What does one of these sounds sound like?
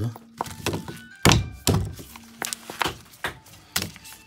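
A battery's foil wrapper crinkles.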